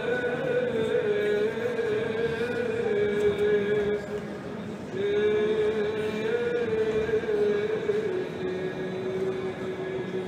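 A man chants in a long, steady drone in a large echoing hall.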